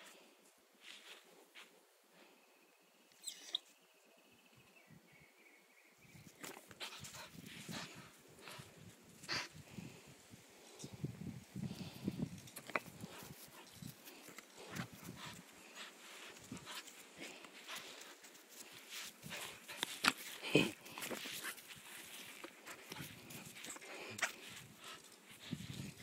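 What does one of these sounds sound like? A dog pants and snuffles close by.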